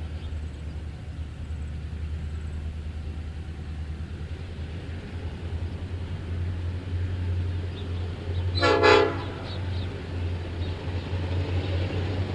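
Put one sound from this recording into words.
A diesel locomotive engine rumbles deeply as a train approaches.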